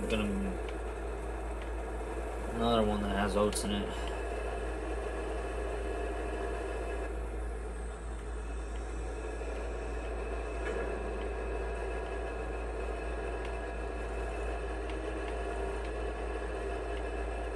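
A tractor engine rumbles steadily through a television speaker.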